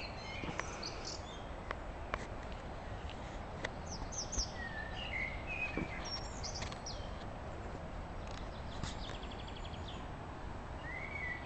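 Wind rustles through the trees outdoors.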